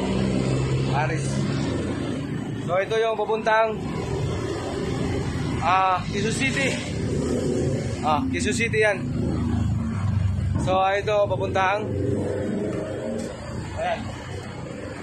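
A middle-aged man talks animatedly close by.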